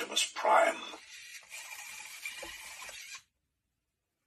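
A toy truck's motor whirs briefly.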